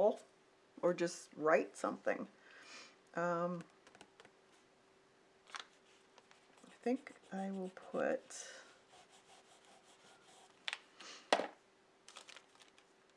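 Paper rustles and slides as hands move it.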